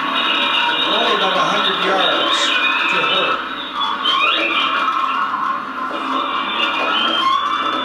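An older man speaks calmly to an audience.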